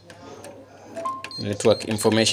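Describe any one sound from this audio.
A machine's keypad gives a short electronic beep.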